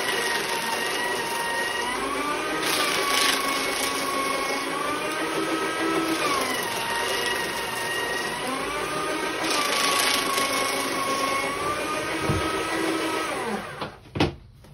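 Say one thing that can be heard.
An electric paper shredder motor whines.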